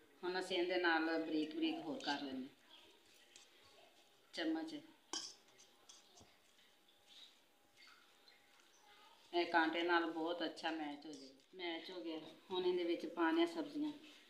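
A fork scrapes and clinks against a metal bowl while mashing potatoes.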